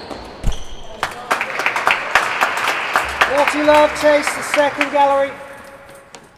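A small crowd claps in a hall with some echo.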